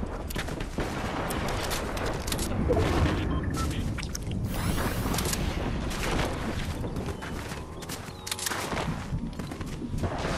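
Footsteps patter quickly over grass and dirt.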